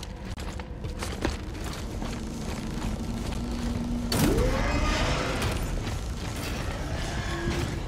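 Heavy boots clank on a metal grate.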